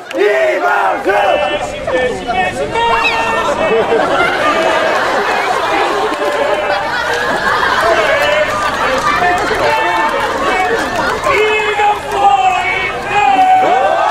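A crowd cheers and claps.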